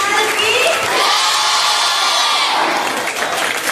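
A crowd cheers loudly in a large, echoing hall.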